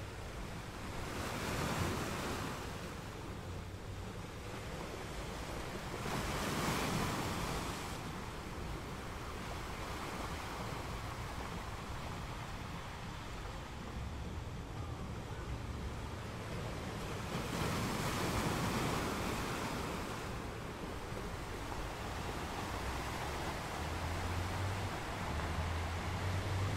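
Ocean waves crash and surge against rocks in repeated swells.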